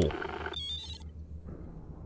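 A keypad beeps as buttons are pressed.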